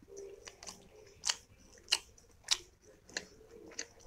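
Soft dumplings squish as fingers tear them.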